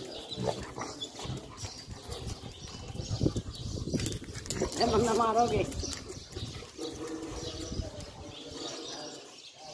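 Dogs' paws scuffle on hard paving.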